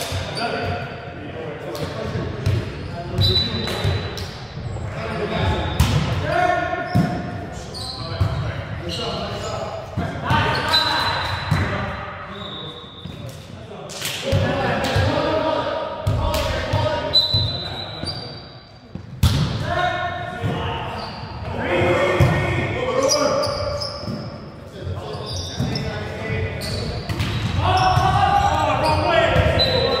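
Young men call out and shout to each other in a large echoing gym.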